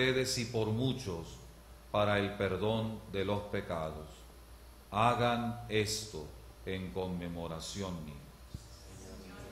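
A man recites a prayer calmly into a microphone.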